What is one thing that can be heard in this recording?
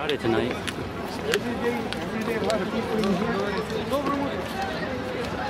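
A crowd of young people chatters nearby outdoors.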